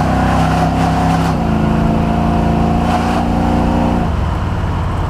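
A truck's engine rumbles loudly nearby.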